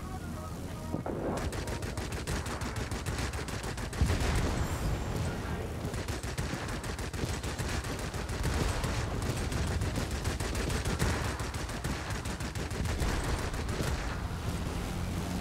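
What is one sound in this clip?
Machine guns rattle in rapid bursts.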